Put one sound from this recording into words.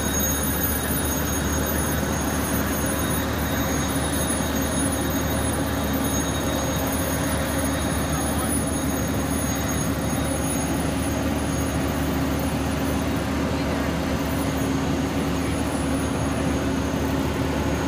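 A fire engine's motor hums steadily nearby.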